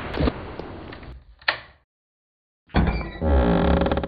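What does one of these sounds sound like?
A wooden chest lid creaks open.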